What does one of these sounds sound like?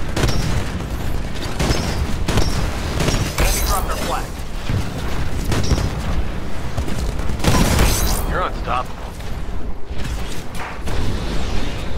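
A heavy cannon fires in rapid bursts.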